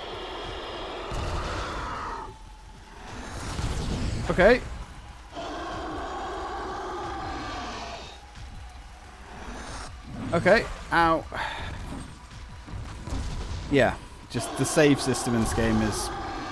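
A huge creature roars and growls.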